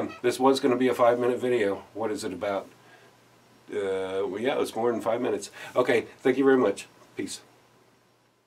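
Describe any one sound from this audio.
A middle-aged man speaks calmly and warmly, close to a microphone.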